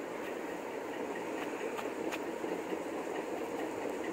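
A rooster pecks at cloth with soft taps.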